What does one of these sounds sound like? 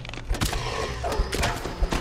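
A skeleton's weapon clashes in combat.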